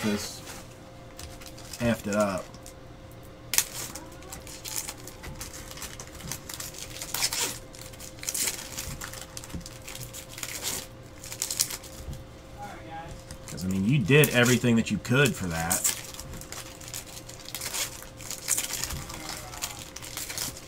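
Foil card packs crinkle as they are handled.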